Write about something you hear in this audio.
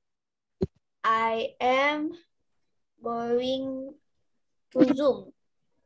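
A young child speaks in a high voice over an online call.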